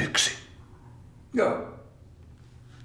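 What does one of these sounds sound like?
An elderly man speaks briefly and quietly close by.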